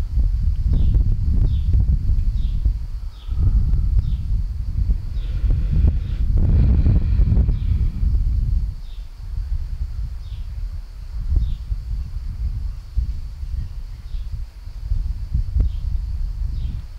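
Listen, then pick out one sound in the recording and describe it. A woman speaks calmly through a headset microphone.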